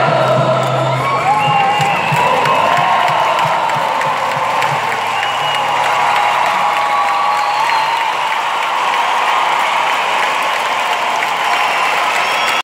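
A large crowd cheers and sings along loudly.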